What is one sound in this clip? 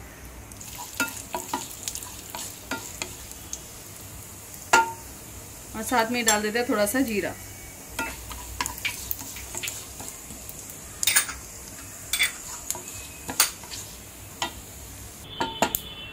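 A wooden spatula scrapes and taps against a metal pan.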